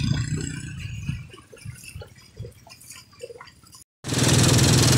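A motorcycle engine putters as it rides through shallow water.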